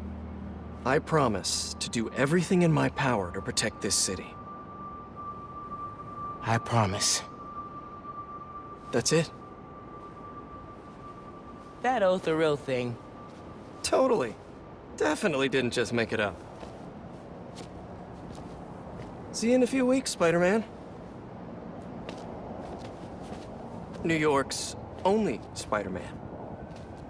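A man speaks warmly and with light humour.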